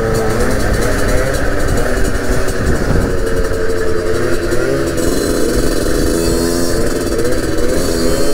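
A second motorcycle engine buzzes a short way ahead.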